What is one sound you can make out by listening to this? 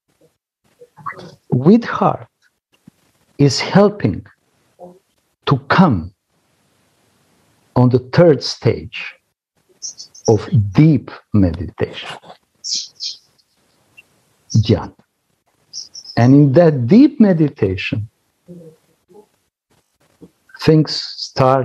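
A middle-aged man speaks with animation through an online call, in bursts with pauses.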